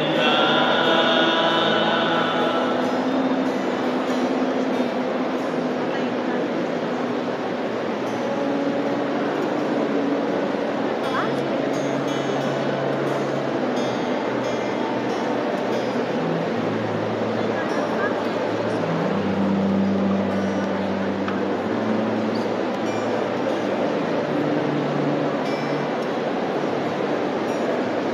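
A crowd of young people sings together in a large echoing hall.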